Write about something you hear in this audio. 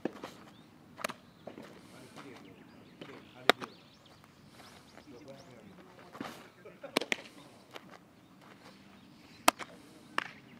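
A baseball smacks into a leather glove.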